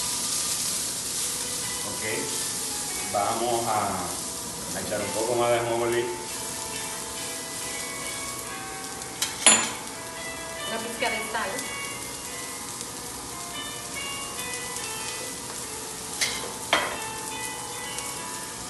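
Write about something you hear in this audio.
A spatula scrapes and clinks against a pan.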